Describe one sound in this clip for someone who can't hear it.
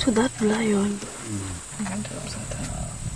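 Elephants rumble and groan close by.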